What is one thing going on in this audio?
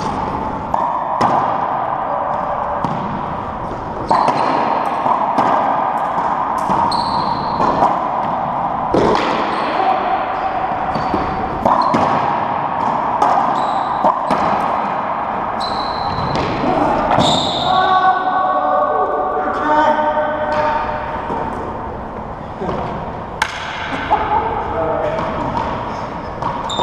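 A racquetball smacks off racquets and walls in an echoing court.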